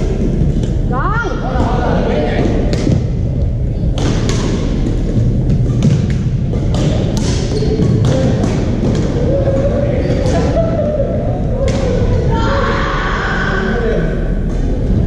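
Shoes squeak on the floor.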